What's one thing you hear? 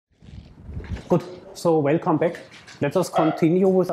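A man lectures with animation through a microphone in a room with a slight echo.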